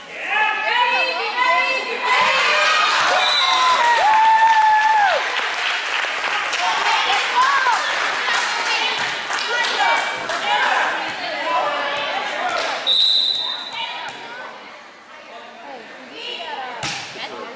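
A volleyball thumps off hands and bounces on the hard floor.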